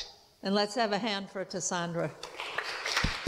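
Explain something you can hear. An elderly woman speaks into a microphone in an echoing hall.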